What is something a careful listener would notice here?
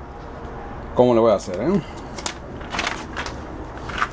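A sheet of paper rustles as it is moved.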